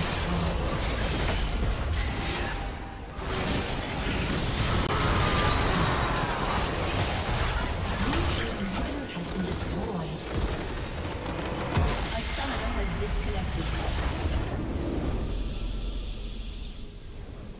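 Magic blasts, clashes and explosions crackle and boom in a fast, busy battle.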